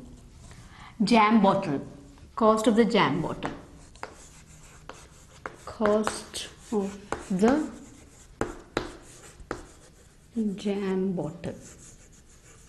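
A woman speaks slowly and clearly, as if explaining.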